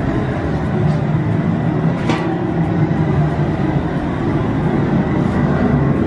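A metal lid clinks against a metal pot.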